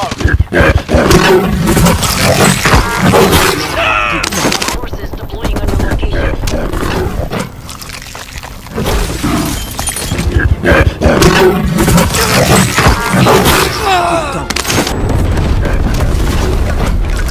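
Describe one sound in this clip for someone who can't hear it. A large cat snarls and growls while attacking.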